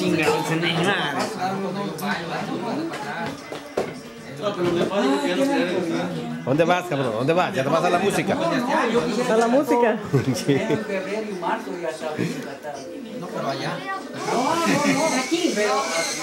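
Several young men talk and laugh together close by.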